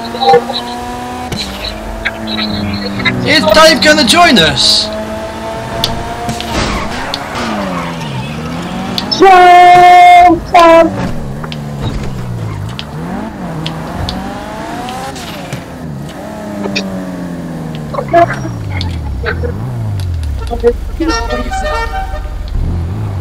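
A car engine revs and whines as a car speeds along.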